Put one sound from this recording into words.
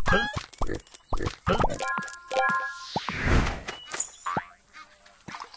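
Short cheerful game chimes and pops ring out in quick succession.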